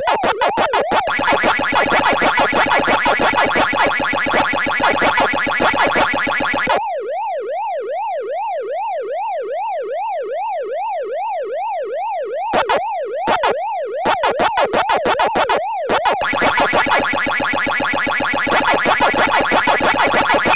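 A fast buzzing electronic warble plays.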